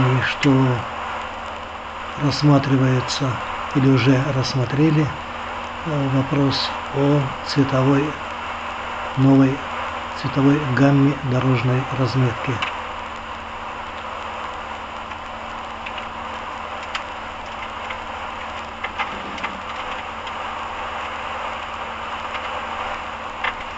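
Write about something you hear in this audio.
Tyres roar steadily on the road surface.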